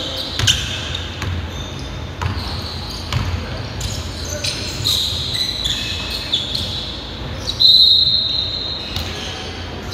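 Sneakers squeak sharply on a wooden court floor.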